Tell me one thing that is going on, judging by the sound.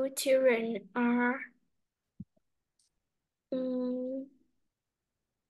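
A young girl speaks in short phrases over an online call.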